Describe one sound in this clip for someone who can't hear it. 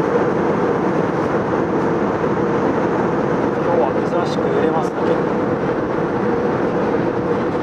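A jet engine drones steadily inside an aircraft cabin.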